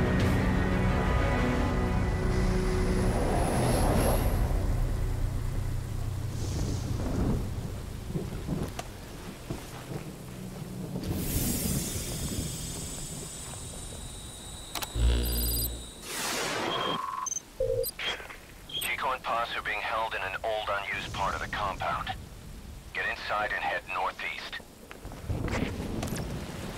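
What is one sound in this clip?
Heavy rain pours down outdoors.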